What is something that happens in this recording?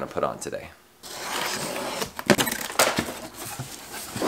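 Cardboard box flaps rustle and thump as they are opened.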